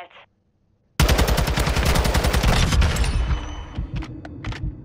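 Rapid gunfire rattles in a fast burst.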